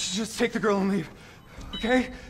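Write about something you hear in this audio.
A frightened man pleads in a shaky voice nearby.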